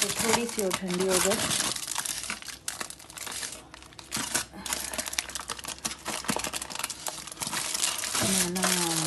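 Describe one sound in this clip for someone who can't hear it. Aluminium foil crinkles and rustles as a hand handles it.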